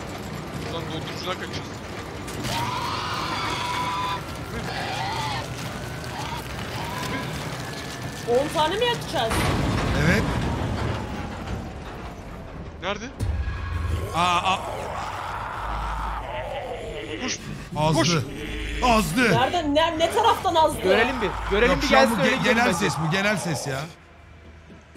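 Young men talk and shout excitedly over microphones.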